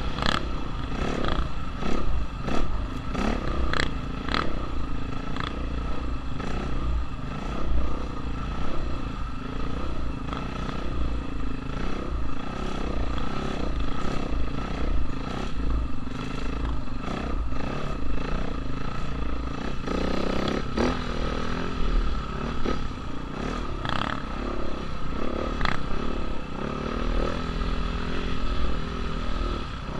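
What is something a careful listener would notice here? A dirt bike engine revs and drops.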